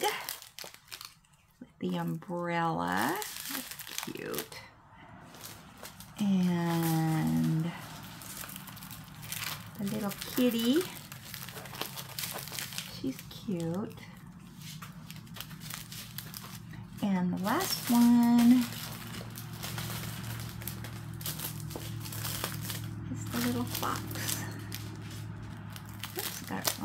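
Plastic packets crinkle and rustle as they are handled.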